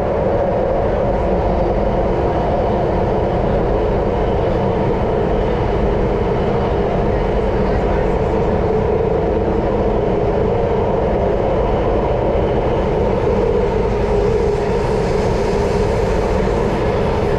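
A train rumbles and roars steadily along a track.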